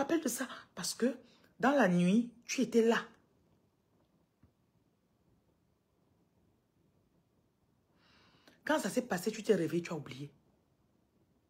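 A woman speaks with animation close to a microphone, pausing in between.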